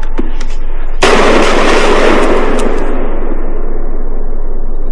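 A gunshot bangs loudly and echoes away.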